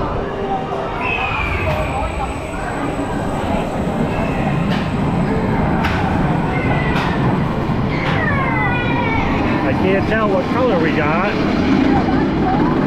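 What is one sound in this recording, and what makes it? A ride vehicle rumbles steadily along its track.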